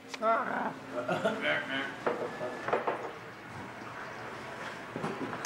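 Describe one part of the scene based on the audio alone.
Young women and a young man talk and laugh nearby.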